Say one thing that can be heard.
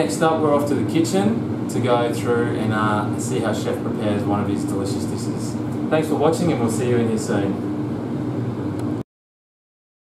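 A man talks calmly and clearly to a close microphone.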